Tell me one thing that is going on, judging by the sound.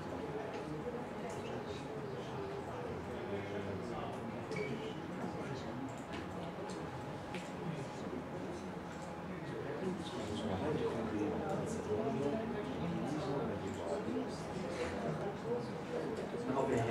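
A man speaks, heard from across a room.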